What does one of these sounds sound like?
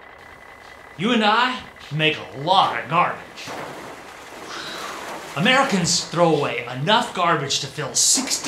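An elderly man speaks with animation, close to a microphone.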